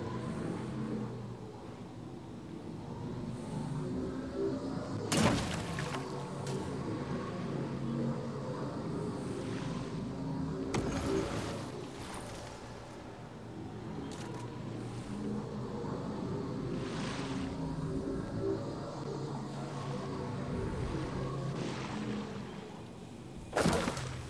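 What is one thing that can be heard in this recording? A hoverboard hums and whooshes along steadily.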